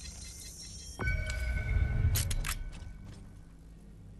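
A short game chime rings out.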